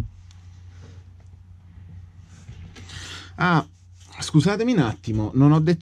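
Hands slide a thin wire across a hard surface.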